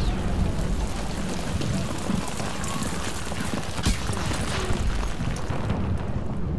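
Explosions boom and fire roars.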